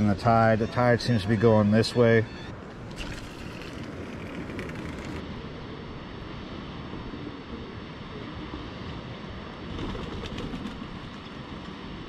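Gentle waves wash below, outdoors in light wind.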